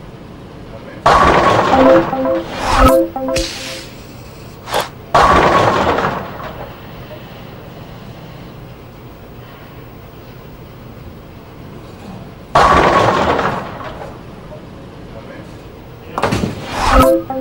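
A bowling ball rolls down a lane with a rumble.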